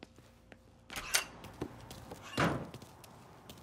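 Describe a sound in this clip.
A door bangs open.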